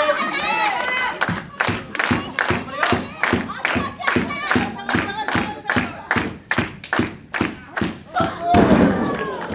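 A crowd claps in a steady rhythm.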